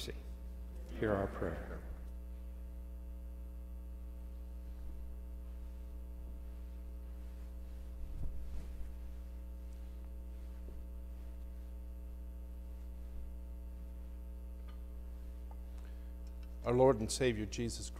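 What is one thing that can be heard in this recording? A man speaks calmly through a microphone and loudspeakers in a large echoing hall.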